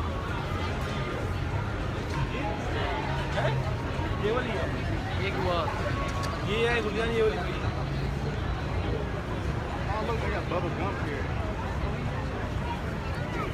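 A busy city street hums with traffic and crowd noise all around.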